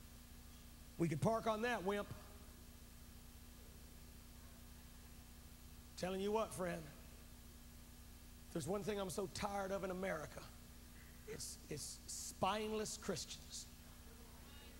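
A man speaks with emotion into a microphone, pausing between phrases.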